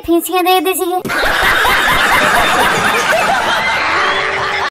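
A crowd of men and women laughs loudly.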